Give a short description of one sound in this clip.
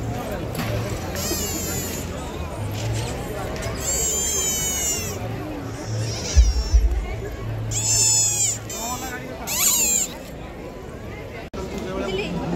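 A crowd chatters and murmurs outdoors.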